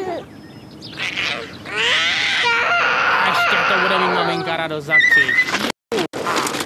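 A little girl squeals and laughs loudly.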